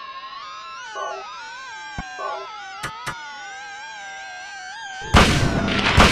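Eerie electronic music drones and wavers.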